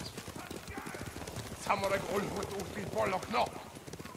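Horses trot by with thudding hooves.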